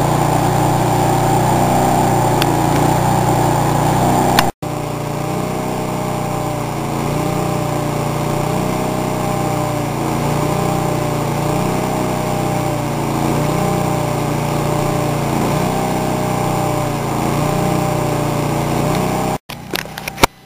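A power tool hums and whirs steadily nearby.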